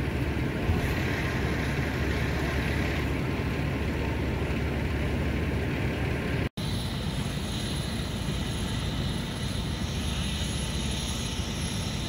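A fire engine's motor rumbles.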